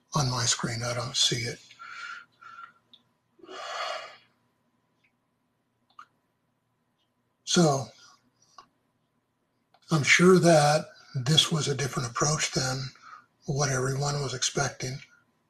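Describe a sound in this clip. A middle-aged man speaks calmly through an online call, with pauses.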